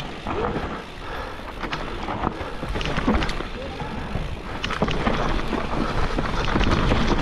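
Bicycle tyres roll and crunch over dry leaves and dirt.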